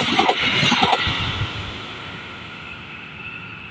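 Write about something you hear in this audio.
The roar of a passing train fades away into the distance.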